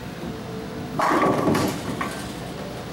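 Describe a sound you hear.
Bowling pins crash and clatter.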